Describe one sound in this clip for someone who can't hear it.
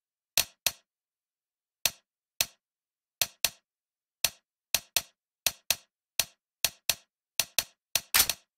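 Short, sharp menu clicks come again and again at an uneven pace.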